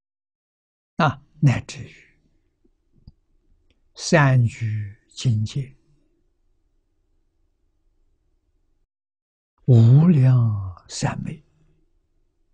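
An elderly man speaks calmly close to a microphone, in short phrases with long pauses.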